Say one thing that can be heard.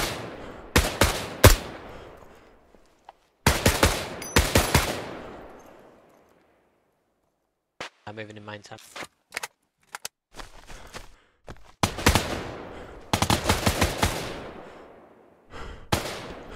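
Rifle shots crack and echo across open terrain.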